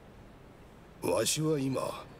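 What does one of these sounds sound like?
A young man speaks briefly close to a microphone.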